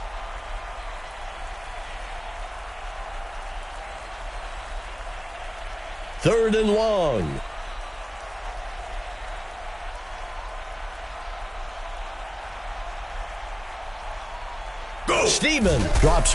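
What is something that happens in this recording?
A stadium crowd murmurs and cheers steadily in the background.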